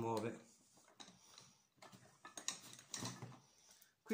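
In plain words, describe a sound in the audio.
Metal tools clink against one another.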